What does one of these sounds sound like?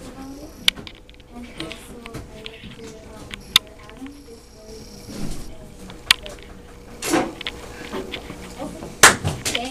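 A young girl talks quietly, close by.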